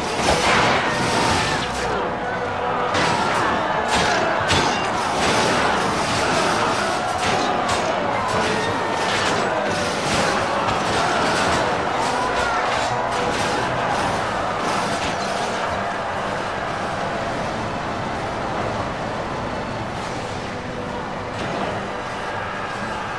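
Weapons clash and strike soldiers in a fierce battle.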